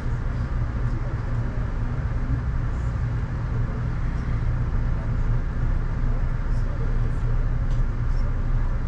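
Rain falls steadily outside, with drops tapping on a window.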